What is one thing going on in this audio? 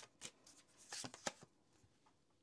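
Cards are shuffled with soft flicking sounds.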